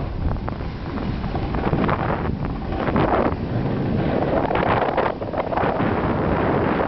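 A snowboard scrapes and hisses across packed snow.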